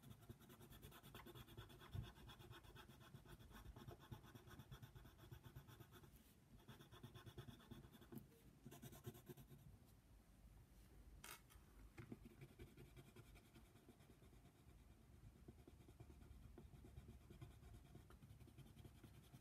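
A colored pencil scratches rapidly back and forth on paper, close by.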